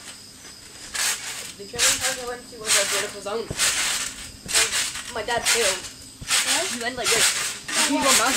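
A boy bounces on a trampoline, its mat thumping and springs creaking.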